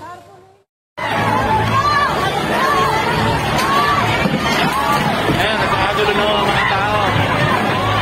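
A large crowd shouts and chatters loudly in a busy, echoing space.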